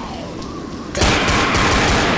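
A glass window shatters.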